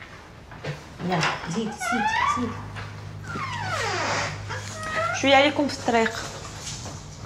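Women speak in hushed, urgent voices close by.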